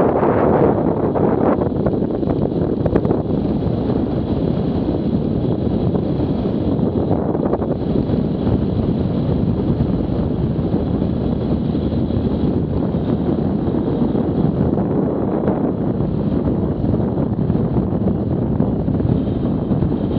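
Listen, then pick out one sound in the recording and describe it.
A motorcycle engine hums steadily while riding.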